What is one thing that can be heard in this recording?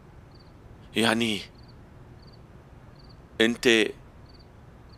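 A man speaks in short, tense phrases close by.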